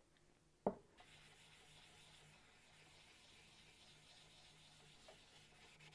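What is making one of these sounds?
A cloth rubs softly over a wooden surface.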